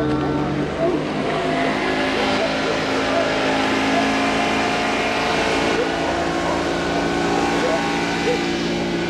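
Water sprays and hisses behind a speeding boat.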